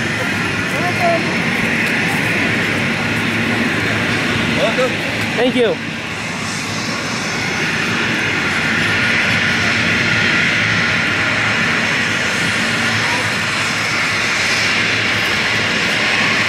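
A steady murmur of noise fills the open air.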